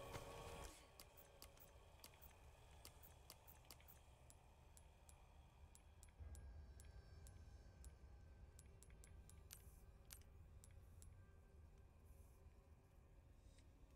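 Short menu clicks tick one after another.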